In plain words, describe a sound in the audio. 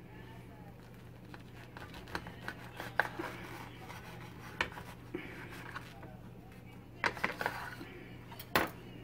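A serrated knife saws through toasted bread with a dry scraping crunch.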